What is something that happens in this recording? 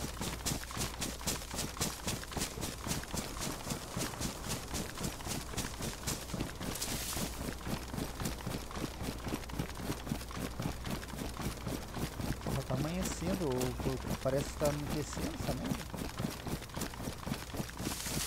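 Footsteps rustle steadily through grass at a quick walking pace.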